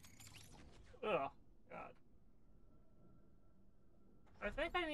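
A man speaks animatedly into a close microphone, in short bursts.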